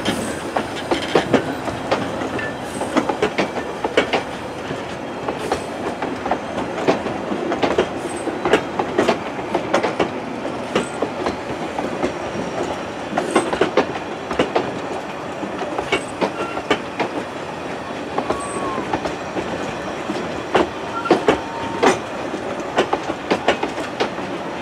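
Railway carriages rumble past close by on the track.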